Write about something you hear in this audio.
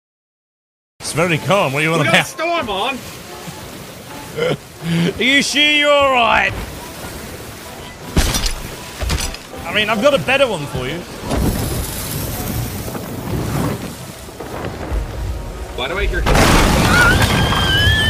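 A second man talks and laughs loudly into a close microphone.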